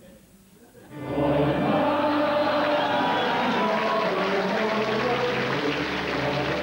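A male choir sings together.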